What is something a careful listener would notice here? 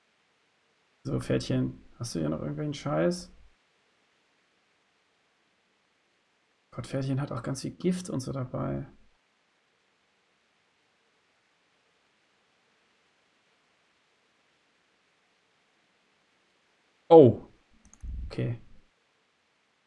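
A man speaks calmly and close into a microphone, in short bursts with long pauses.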